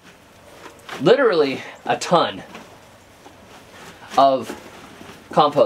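A man grunts and groans with effort close by.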